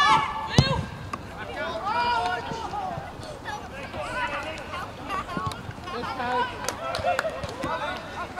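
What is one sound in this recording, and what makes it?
Men shout and call out to each other outdoors, some close and some across the field.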